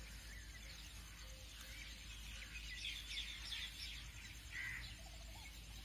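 Birds chirp softly outdoors.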